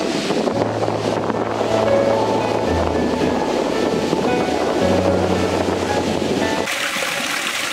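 Ocean waves crash and roll onto a shore.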